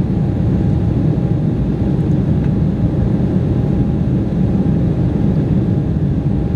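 Jet engines roar steadily inside an airplane cabin in flight.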